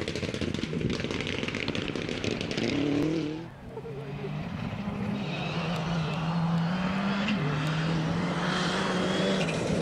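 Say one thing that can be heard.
A rally car's engine roars and revs hard as the car races closer on a dirt track.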